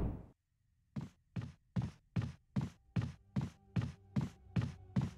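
Footsteps walk steadily across a hard floor.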